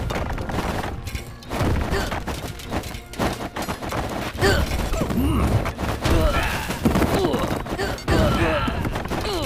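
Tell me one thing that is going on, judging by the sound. Swords clash and thud in a fierce battle.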